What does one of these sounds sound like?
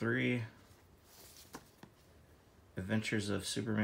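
A comic book is slid off a pile and set down with a soft slap.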